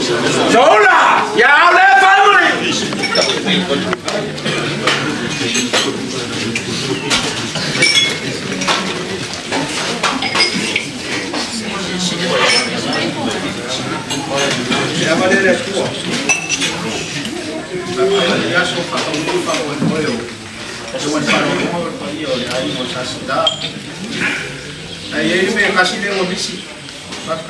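A man speaks in a raised, declaiming voice, addressing a gathering.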